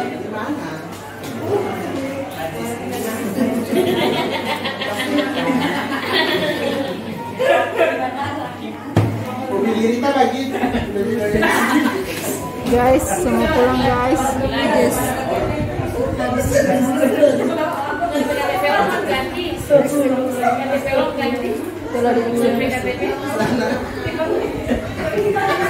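A young woman talks close to the microphone.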